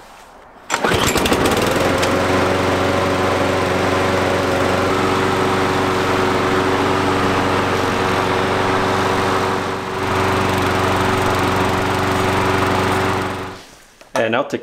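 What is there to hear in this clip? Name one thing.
A lawn mower engine starts and runs loudly at a steady idle.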